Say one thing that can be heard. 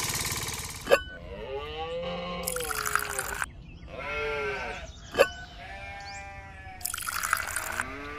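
Liquid pours from a small glass into a clay pot.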